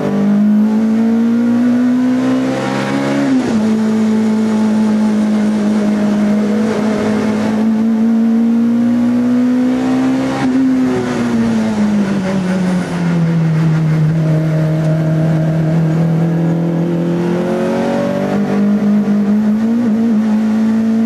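A four-cylinder race car engine roars at high revs from inside the cabin.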